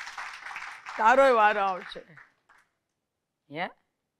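A middle-aged woman speaks calmly through a microphone.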